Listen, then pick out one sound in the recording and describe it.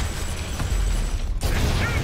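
A monster roars loudly.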